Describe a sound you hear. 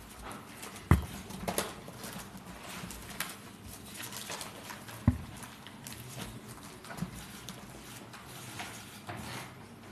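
Papers rustle and shuffle close to a microphone.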